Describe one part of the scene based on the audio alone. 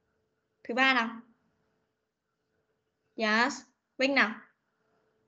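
A child speaks in short phrases over an online call.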